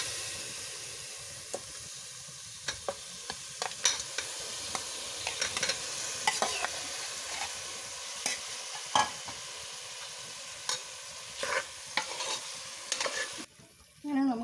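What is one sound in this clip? A metal spoon scrapes and clinks against a metal pot.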